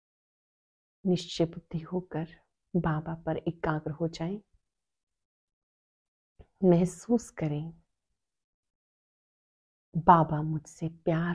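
A woman speaks slowly and calmly, close to a microphone, with long pauses.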